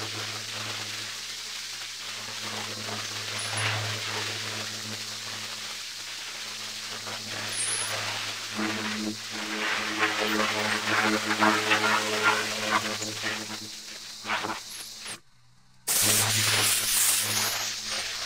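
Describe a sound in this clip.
A high-pressure water jet hisses against concrete.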